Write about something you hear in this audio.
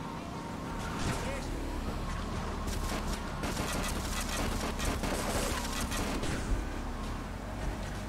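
Cars crash and scrape against each other with metal bangs.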